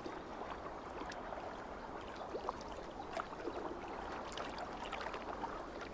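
Water laps gently at a shore.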